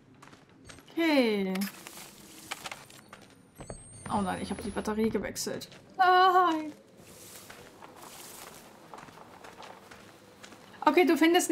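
A young woman speaks and exclaims with animation, close to a microphone.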